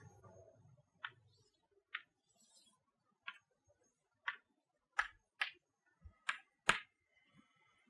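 Chalk taps and scrapes sharply on a board.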